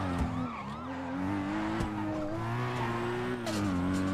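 Tyres screech on tarmac as a car drifts through a turn.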